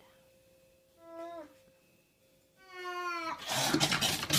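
A cat meows several times, rising in pitch.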